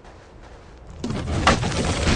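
Heavy blows thud and clang during a fight.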